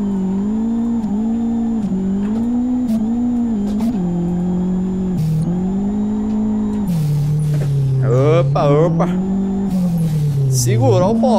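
A car engine hums steadily, its pitch rising and dropping with gear changes.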